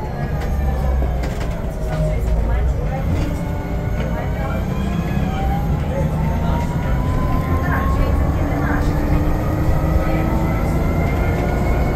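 The bus rattles and creaks as it rolls over the road.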